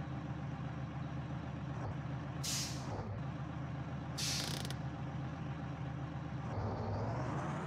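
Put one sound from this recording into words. A diesel bus engine idles.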